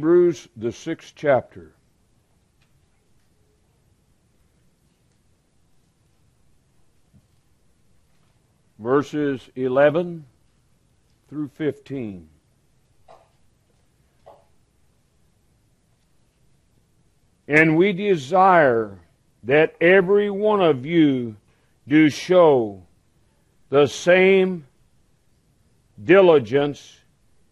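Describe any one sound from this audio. A middle-aged man speaks slowly and calmly into a microphone, with long pauses, in a room with slight echo.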